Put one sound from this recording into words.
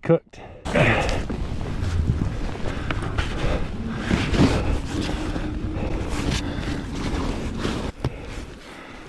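Snow crunches and thumps close by.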